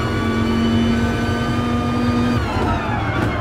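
A racing car engine roars at high revs.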